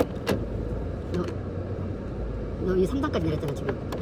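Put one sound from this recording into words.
A gear lever clunks into place.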